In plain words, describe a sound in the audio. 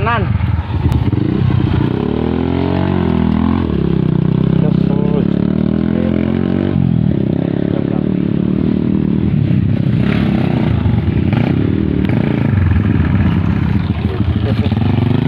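A dirt bike engine revs as it rides along a dirt trail.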